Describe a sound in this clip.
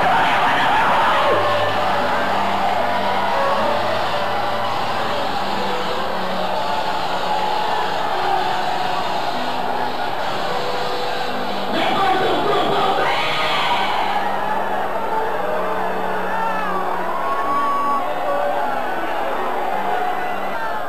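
A large crowd of men and women calls out and prays aloud together in a large echoing hall.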